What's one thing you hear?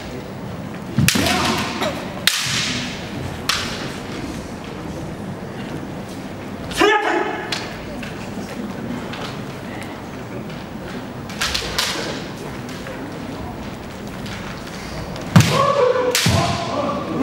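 Bamboo swords clack sharply against each other and against armour in an echoing hall.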